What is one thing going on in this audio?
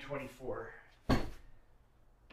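A cardboard box thuds down onto a table.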